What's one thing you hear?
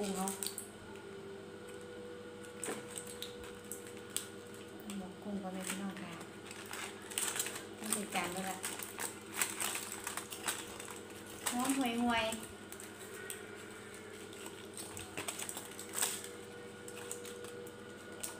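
Foil crinkles and rustles.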